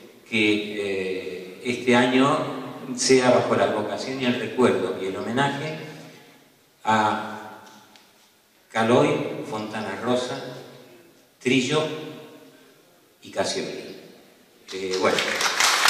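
A man speaks slowly through a microphone in an echoing hall.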